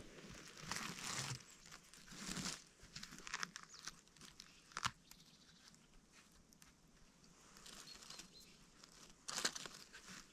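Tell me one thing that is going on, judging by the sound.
Hands rustle and crackle through dry needles and twigs on the ground.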